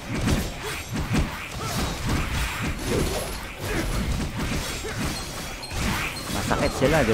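Game sword strikes and magic blasts hit rapidly in quick bursts.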